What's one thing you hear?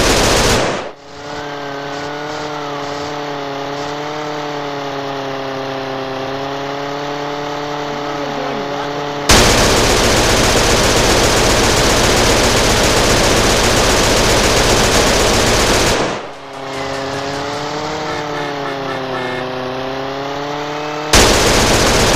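A small propeller plane's engine drones with a gently wavering pitch.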